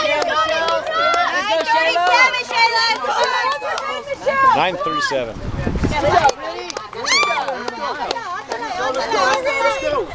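Young women shout and cheer with excitement close by.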